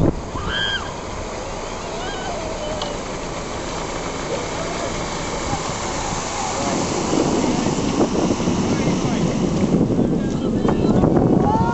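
A motorboat engine hums and grows louder as it approaches.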